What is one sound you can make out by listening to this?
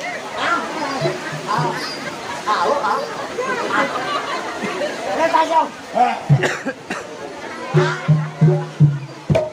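Drums beat in heavy, repeated strokes.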